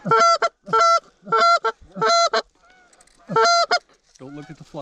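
A goose call honks loudly in short repeated bursts close by.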